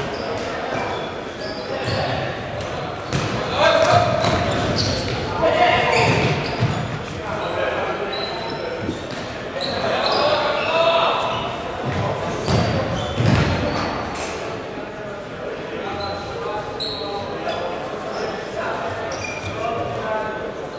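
Players' shoes squeak on a hard indoor court in a large echoing hall.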